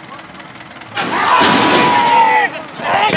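Starting gates clang open with a loud metallic crash.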